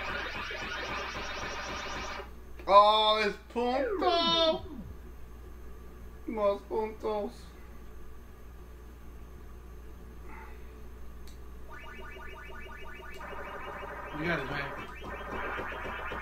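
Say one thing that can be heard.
A video game character gobbles dots with a rapid, repeating electronic warble.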